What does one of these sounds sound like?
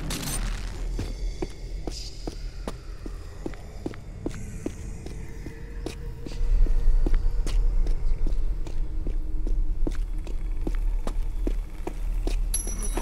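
Quick footsteps run on a stone floor, echoing.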